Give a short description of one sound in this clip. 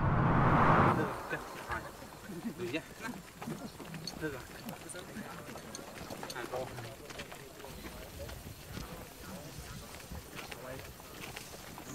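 Footsteps crunch on a dirt path as several people walk uphill.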